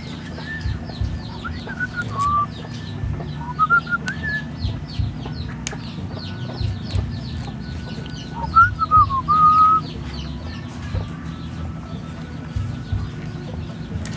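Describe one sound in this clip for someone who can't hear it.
Fresh leaves rustle and snap softly as hands strip them from their stems.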